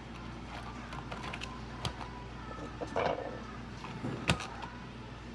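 Plastic cup lids click as they are pressed onto cups.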